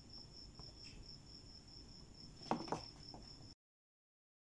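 Cloth rustles softly.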